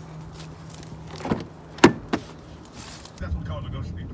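A car door handle clicks open.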